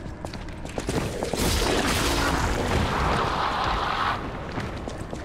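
Magic blasts crackle and burst loudly during a fight.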